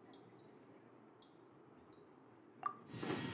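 Light chimes tinkle.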